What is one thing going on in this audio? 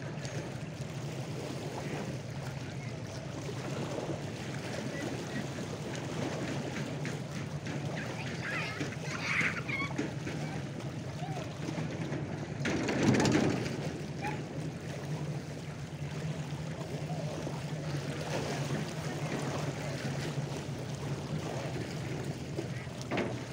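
Small waves lap gently on the water nearby.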